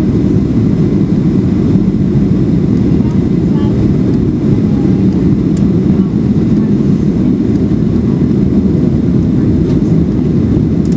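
Jet engines roar steadily, heard from inside an airplane cabin.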